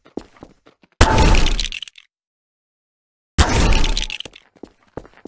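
A toy gun fires with a loud, rushing burst.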